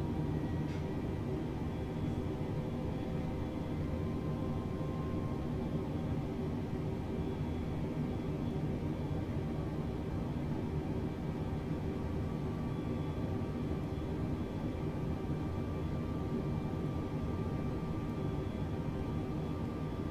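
Jet engines hum steadily in a cockpit.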